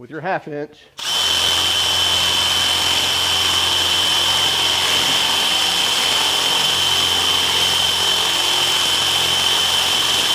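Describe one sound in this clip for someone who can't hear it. A power drill whines steadily as it bores into metal.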